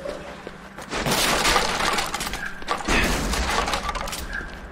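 Glass shatters and scatters.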